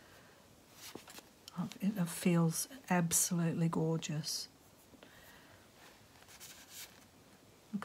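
Soft yarn rustles as hands handle it.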